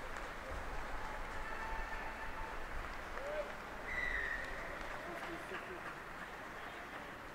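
Rugby players shout to each other outdoors on an open field.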